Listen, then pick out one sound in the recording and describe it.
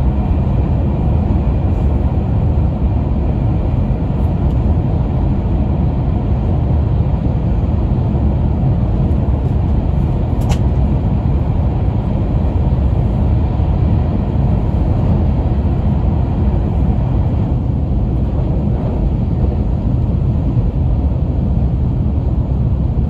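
A train hums and rumbles steadily at speed, heard from inside a carriage.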